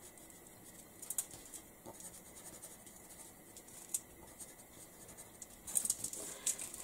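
A plastic sheet crinkles and rustles.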